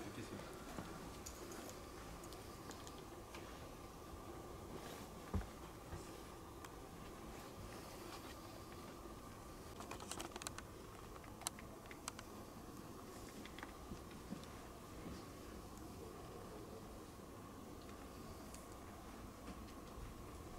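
Chess pieces clack softly as they are set on a board.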